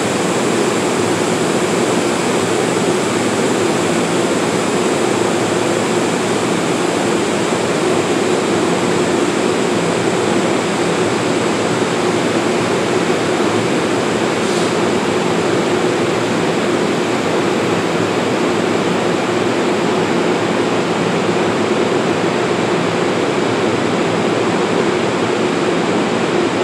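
A stationary train's engine hums and whines steadily in an echoing underground platform.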